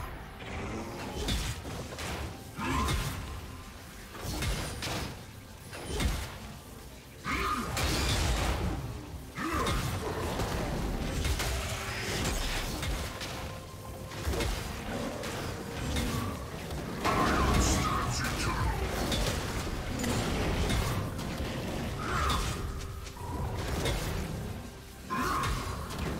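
Game combat hits thud and clang.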